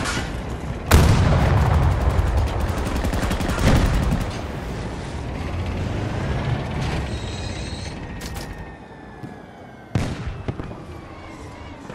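A tank engine rumbles and tracks clatter steadily.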